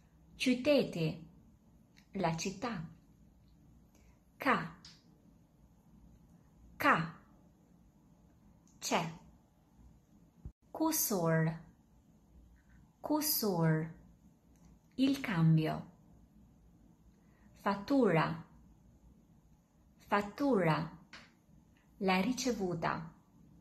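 A woman speaks clearly and slowly into a close microphone, saying short words with pauses between them.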